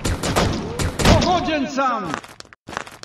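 Gunfire bursts out in rapid shots, echoing in a vaulted hall.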